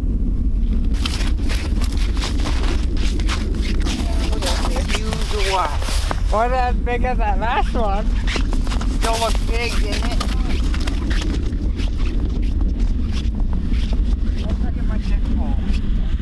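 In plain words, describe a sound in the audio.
Boots crunch on snow as a man walks away.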